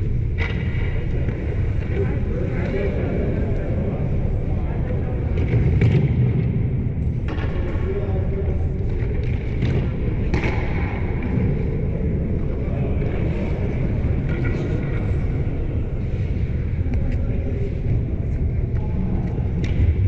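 Hockey sticks clack against pucks and ice.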